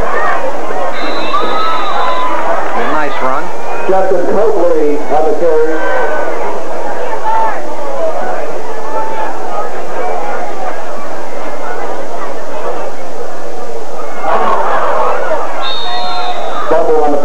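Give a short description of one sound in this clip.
A referee's whistle blows sharply, twice.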